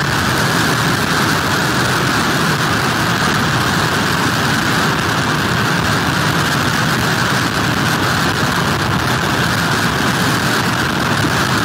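Heavy surf crashes and roars.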